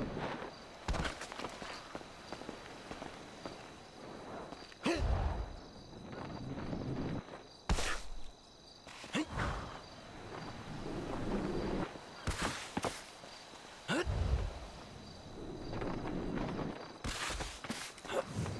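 A body thuds heavily onto the ground.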